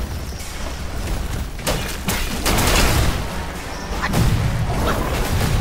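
A huge creature stomps heavily on rocky ground.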